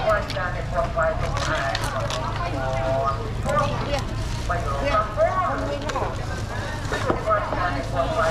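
Women talk and call out nearby in a busy outdoor market crowd.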